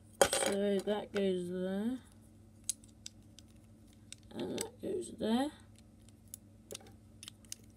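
Small plastic parts click and tap together.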